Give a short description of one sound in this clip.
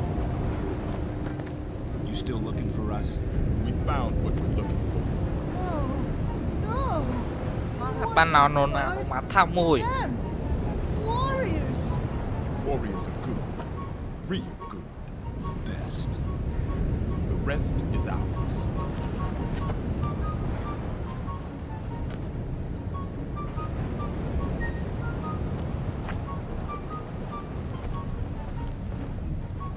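A young man talks casually close to a microphone.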